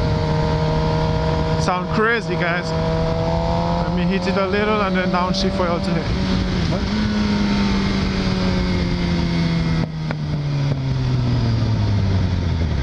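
A motorcycle engine hums steadily and its pitch drops near the end.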